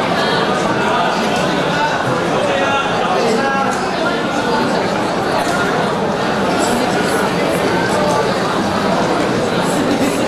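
An audience murmurs and chatters in a large hall.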